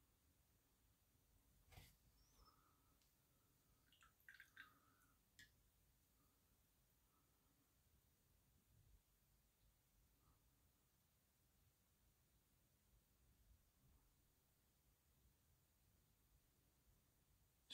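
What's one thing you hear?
A small brush dabs softly against a hard surface.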